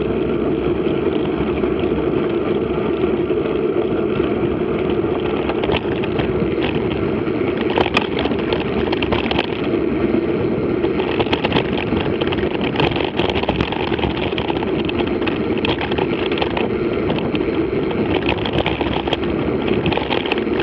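Tyres crunch and rattle over a bumpy gravel track.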